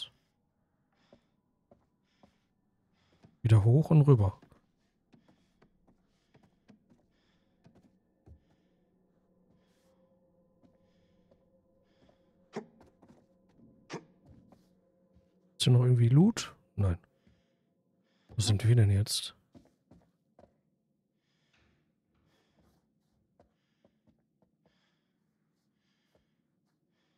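Footsteps tread slowly on wooden floors and stairs.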